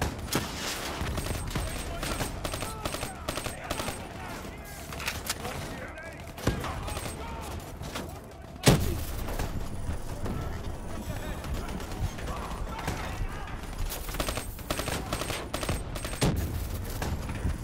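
Rifle gunfire rattles in quick bursts.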